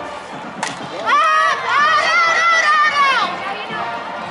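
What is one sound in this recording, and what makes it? Young women cheer and shout outdoors.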